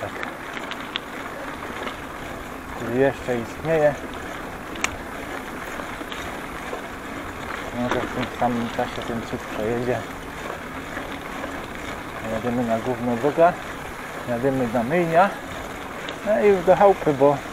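Tyres roll and rattle over a rough dirt track.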